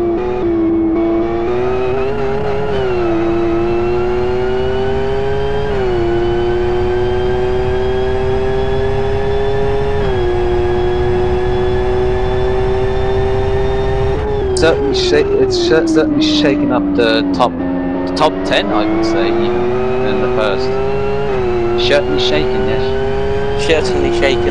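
A racing car engine roars steadily, its pitch climbing slowly and dropping sharply at each gear change.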